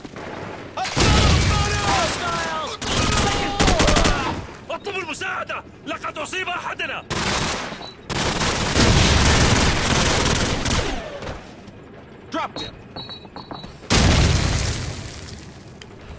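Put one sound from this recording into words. Gunfire rings out in loud bursts.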